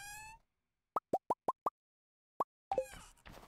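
Short, high electronic blips sound quickly one after another.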